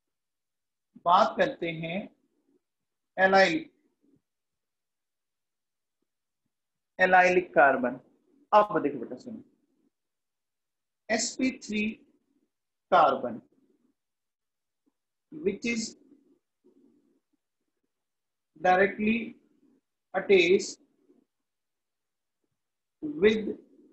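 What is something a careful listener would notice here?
A man speaks calmly in short phrases with pauses, close to a microphone.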